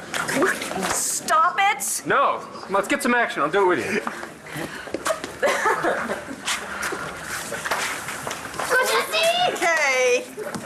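Women squeal and shriek excitedly.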